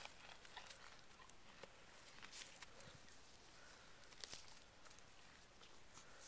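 A horse tears and munches grass up close.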